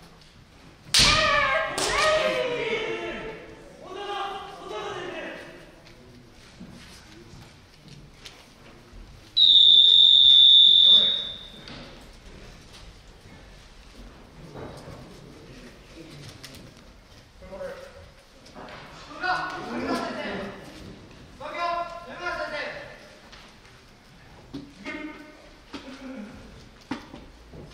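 Fighters shout loudly in a large echoing hall.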